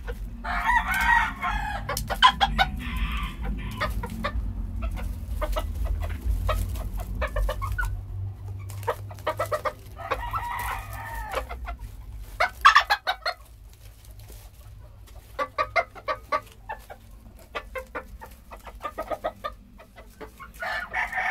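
Chickens cluck and squawk close by.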